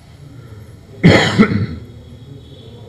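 A man coughs.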